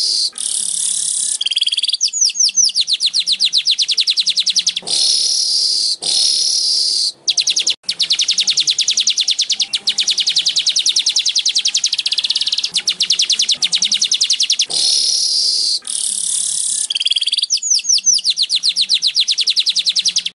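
A small bird sings close by in loud, high buzzing trills and rapid chattering.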